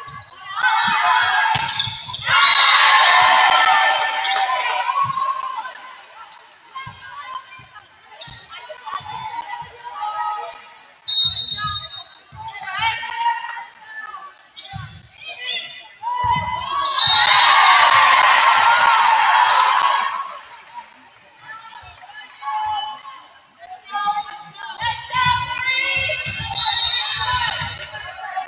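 A volleyball is struck with sharp thumps.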